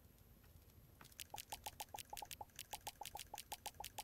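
Rapid, bright blips from a game menu repeat as items are crafted.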